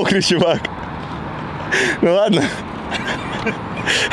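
A young man laughs.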